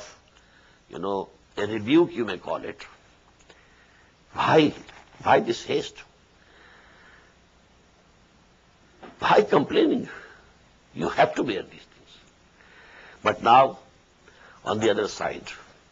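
An elderly man speaks with animation into a nearby microphone, in short bursts with pauses.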